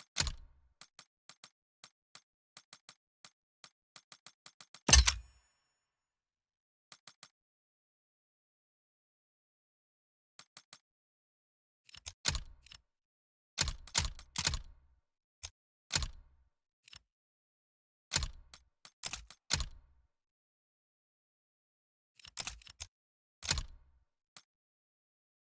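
Short electronic menu clicks and whooshes sound as options are selected.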